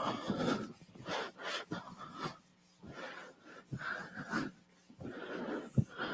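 A felt eraser rubs across a chalkboard.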